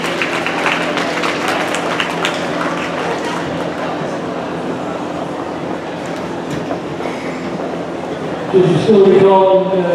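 A crowd of spectators murmurs and chatters in the background.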